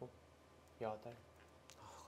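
A stone clacks onto a wooden game board.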